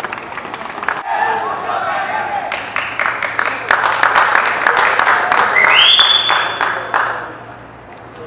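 A group of young players chants and shouts together outdoors.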